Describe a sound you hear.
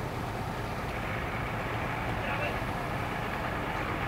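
A motorboat engine hums as the boat pulls away.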